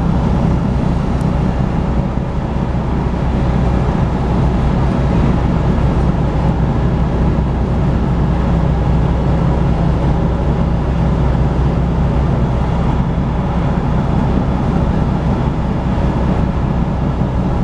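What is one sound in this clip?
Tyres hiss on the road surface.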